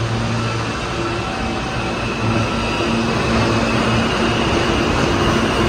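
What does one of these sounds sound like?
A train on the far track rumbles past.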